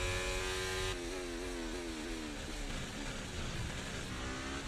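A racing car engine drops in pitch as the car brakes and shifts down.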